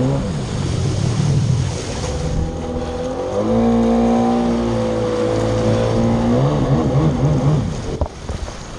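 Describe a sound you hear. A jet ski engine roars and changes pitch as it revs.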